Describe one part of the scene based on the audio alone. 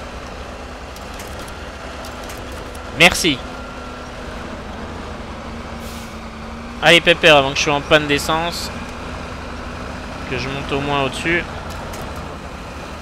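A truck engine rumbles low and steadily.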